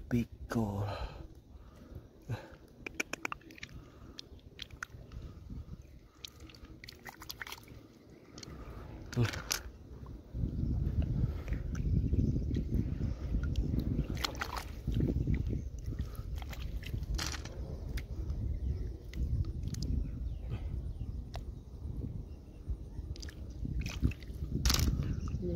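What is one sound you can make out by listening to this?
Shallow water trickles and ripples over stones.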